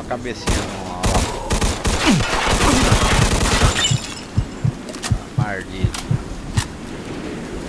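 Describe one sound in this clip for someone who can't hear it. A submachine gun fires in rapid, loud bursts.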